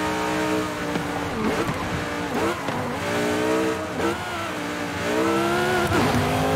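A car engine slows and burbles as the car brakes.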